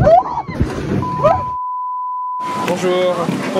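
A steady high test tone beeps.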